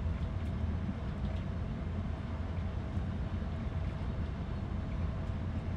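Steel wheels clack faintly over rail joints.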